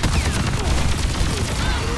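A loud blast booms nearby.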